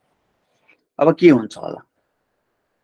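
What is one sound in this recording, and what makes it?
A man speaks briefly and calmly through a microphone.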